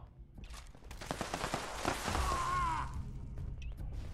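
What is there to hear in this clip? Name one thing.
Rifle shots crack in quick succession.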